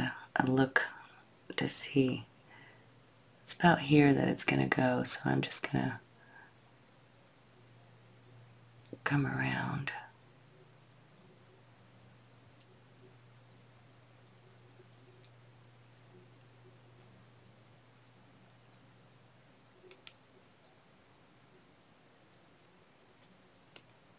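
Thin wire clicks and scrapes faintly as fingers bend it.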